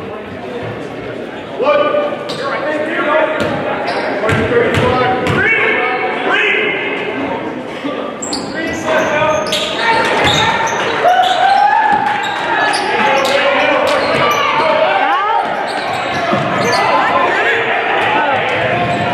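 A crowd of spectators cheers and chatters in an echoing gym.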